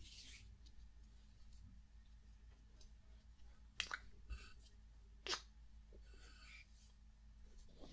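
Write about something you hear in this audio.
Hands brush and rub together close to the microphone.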